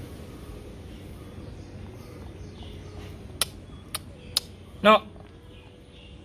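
A dog sniffs at the ground.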